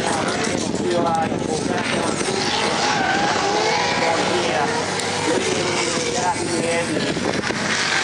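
Tyres squeal and screech on tarmac.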